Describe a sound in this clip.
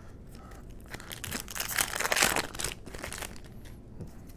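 A foil card pack crinkles as it is torn open.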